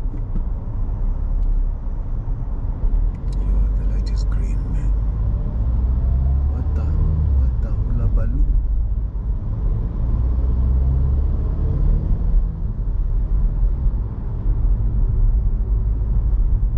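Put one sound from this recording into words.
A car engine hums steadily, with a low road rumble.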